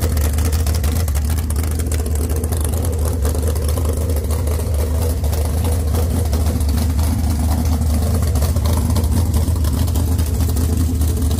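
A V8 engine idles loudly with a deep, steady, lumpy rumble through open exhaust pipes.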